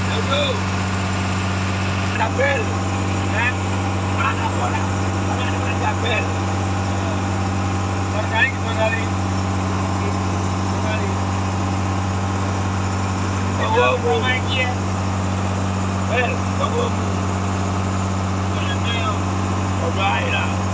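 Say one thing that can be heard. A boat engine drones steadily up close.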